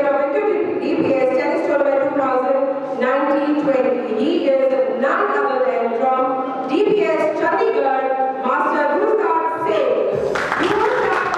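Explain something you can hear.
A woman speaks clearly through a microphone in an echoing hall.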